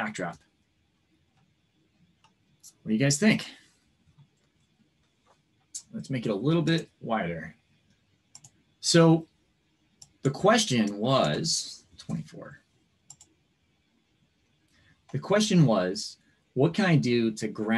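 A man speaks calmly over an online call, explaining in short bursts.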